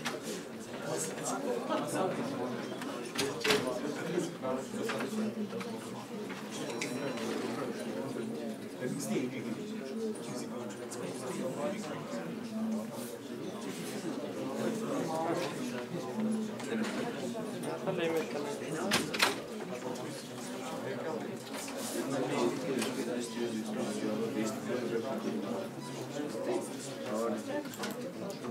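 A man talks at a distance in a small room with some echo.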